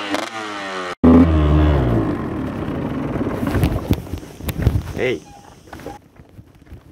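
A dirt bike engine roars loudly and then fades.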